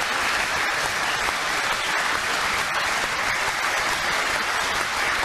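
A large crowd applauds steadily in an echoing hall.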